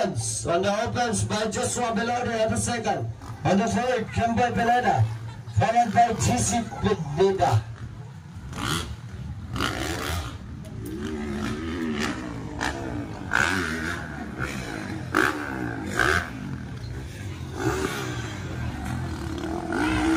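Dirt bike engines rev loudly and rise and fall in pitch.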